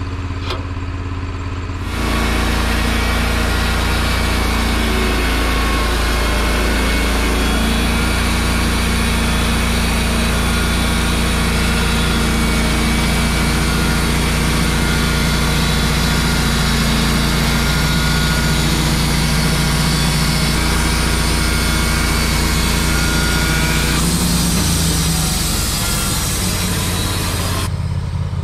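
An engine drones steadily outdoors.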